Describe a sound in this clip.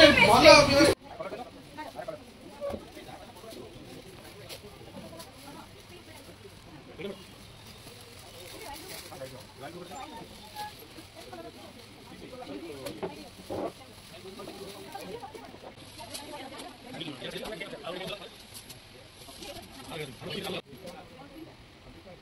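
Men and women chat quietly nearby.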